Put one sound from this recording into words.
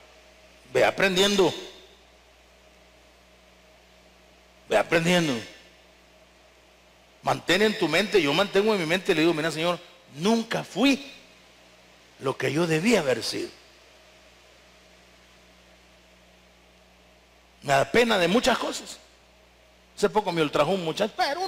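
A man preaches forcefully through a microphone in a large echoing hall, pausing between bursts.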